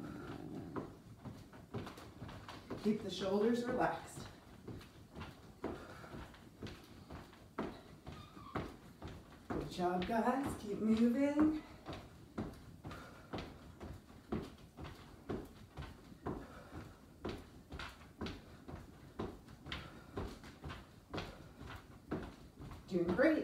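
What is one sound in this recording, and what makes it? Feet thump on a floor in a quick, steady rhythm.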